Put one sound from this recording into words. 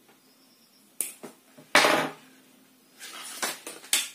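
Metal pliers clatter onto a table.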